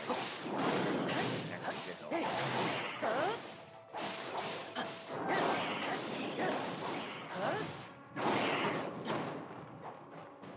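Heavy weapon blows strike a giant with loud crashing impacts.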